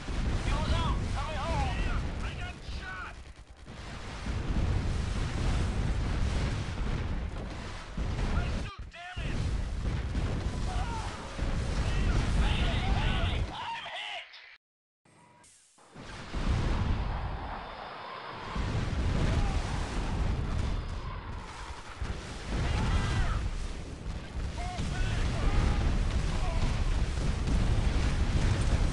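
Guns fire and explosions boom in a battle.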